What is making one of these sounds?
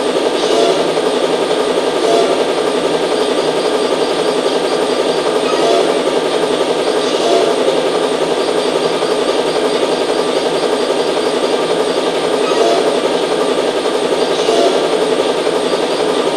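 Steady electronic game music plays.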